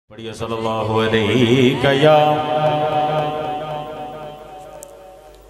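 A young man sings a melodic recitation loudly through a microphone and loudspeakers.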